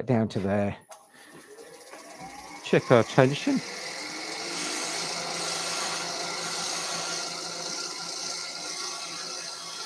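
A lathe motor whirs up to speed and runs steadily.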